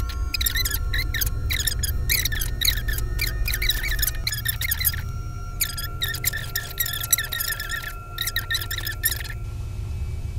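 A young girl reads aloud softly, close by.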